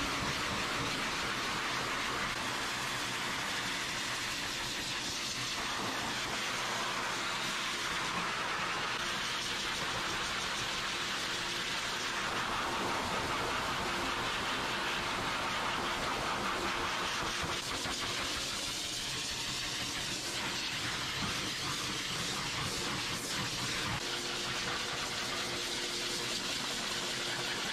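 A pet dryer blows air with a loud, steady roar.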